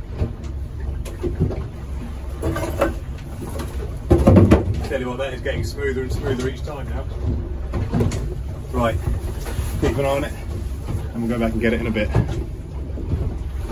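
Wind blows hard outdoors over open water.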